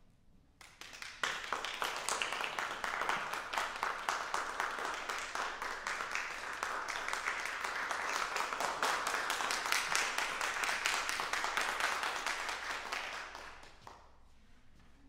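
An audience claps loudly in an echoing hall, then the applause fades away.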